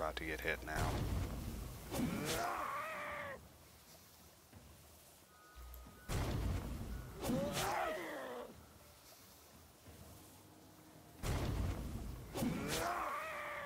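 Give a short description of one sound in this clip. A heavy weapon strikes with a hard thud, several times.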